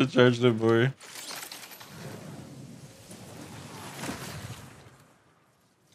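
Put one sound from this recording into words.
A zipline cable whirs as something slides along it.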